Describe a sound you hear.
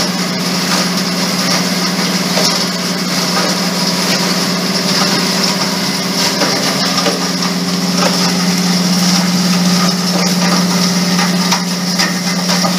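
Scrap metal clatters and rattles inside a crushing machine.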